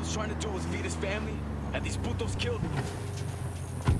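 A car door opens.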